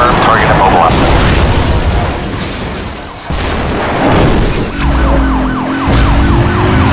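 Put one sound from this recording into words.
Metal crashes as a car hits a barrier.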